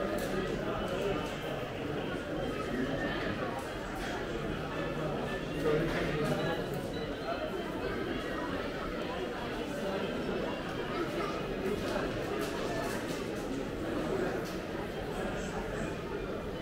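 A crowd murmurs and chatters around the listener in an echoing hall.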